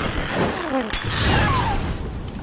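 A loud explosion bursts with a deep boom.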